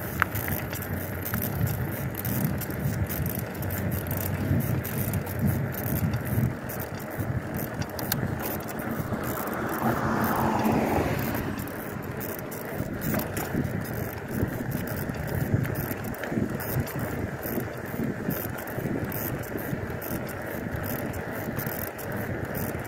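Bicycle tyres roll over pavement with a steady rumble.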